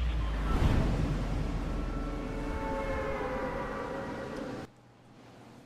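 Wind rushes loudly during a glide.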